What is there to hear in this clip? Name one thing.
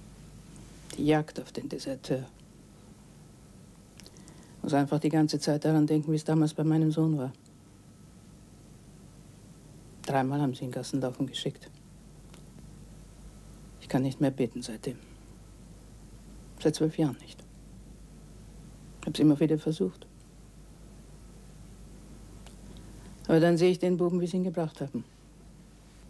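An older woman speaks calmly and slowly, close by.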